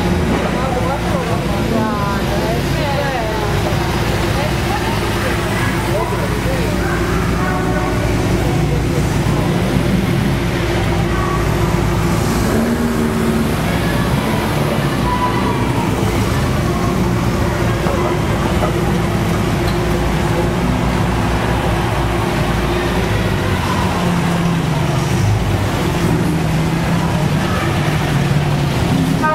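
Old car engines rumble and putter past one after another.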